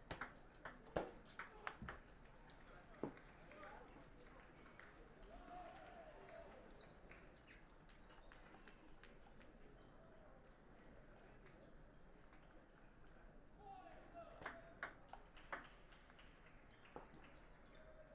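A table tennis ball clicks back and forth between paddles and the table in a large echoing hall.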